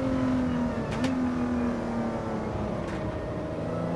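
Gearshifts click sharply.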